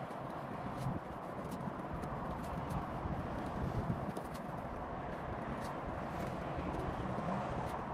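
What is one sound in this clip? A wet sponge rubs against a car's body.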